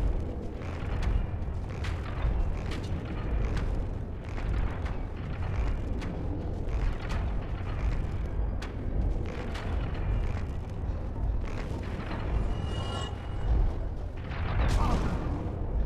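A huge pendulum blade swings past with a heavy whoosh.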